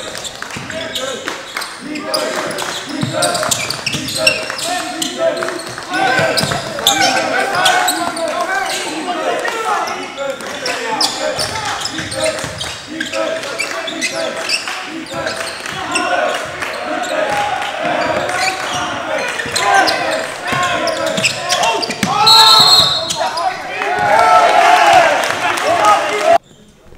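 A basketball bounces on a hard court in a large echoing gym.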